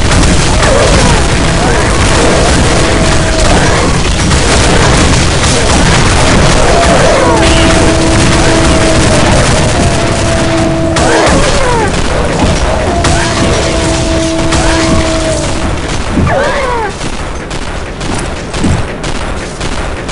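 Loud explosions boom and roar.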